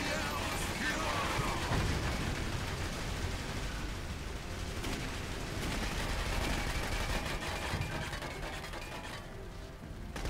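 Rapid gunfire rattles and bangs.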